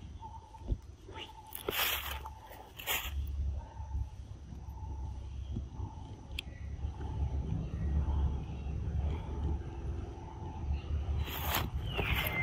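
A monkey chews on a piece of fruit.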